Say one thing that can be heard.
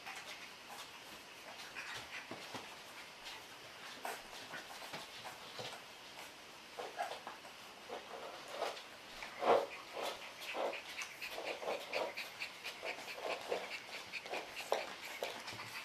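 Small claws click and patter on a hard floor.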